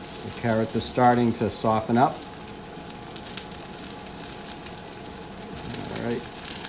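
A spatula scrapes and taps against a pan.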